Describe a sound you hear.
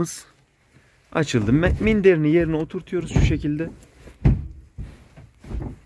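A hand pats and rubs a soft cushion.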